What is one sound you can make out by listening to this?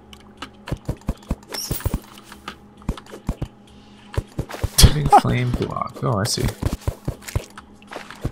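Short digging clicks from a video game tap quickly and unevenly.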